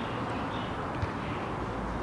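A rugby ball is kicked with a dull thud.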